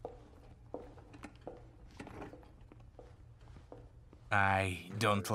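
Suitcase wheels roll and footsteps click across a hard floor.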